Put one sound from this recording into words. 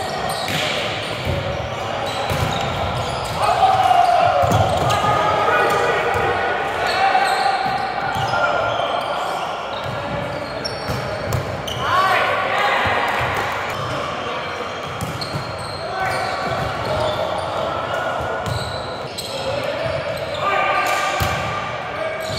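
A volleyball thuds against hands and arms.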